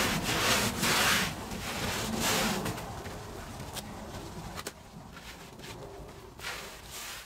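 A brush scrubs a wet, foamy rug with rough, rasping strokes.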